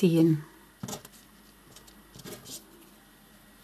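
Rubber bands rustle and creak softly against a hook.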